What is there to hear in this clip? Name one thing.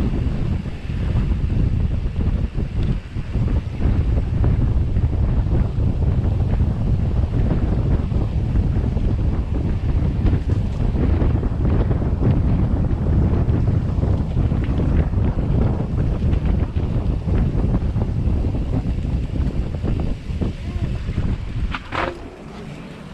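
Wind buffets the microphone in strong gusts.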